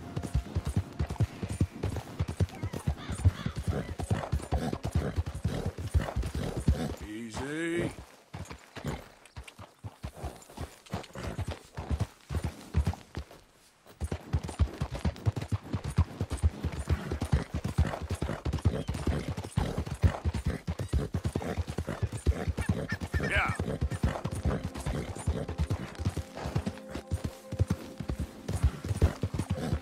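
A horse's hooves thud quickly on a dirt trail.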